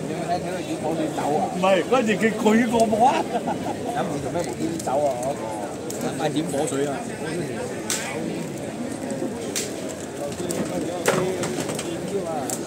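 A large bonfire crackles.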